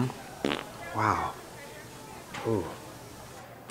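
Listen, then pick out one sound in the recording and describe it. A man moans softly.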